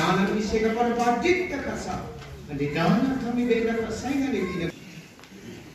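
A crowd of people sings loudly nearby.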